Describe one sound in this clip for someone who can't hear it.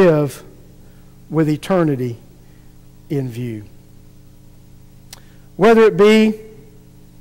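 A middle-aged man speaks slowly and calmly through a microphone in a large echoing room, with long pauses.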